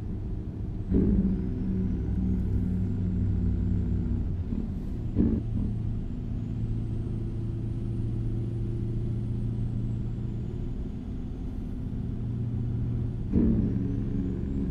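Oncoming vehicles whoosh past in brief bursts.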